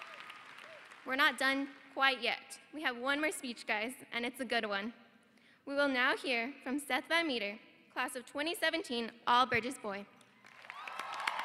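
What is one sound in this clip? A young woman speaks calmly into a microphone over loudspeakers.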